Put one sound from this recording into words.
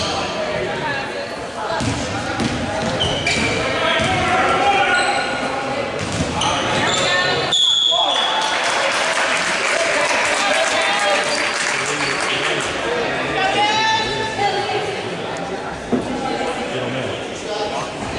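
A ball bounces on a hard wooden floor.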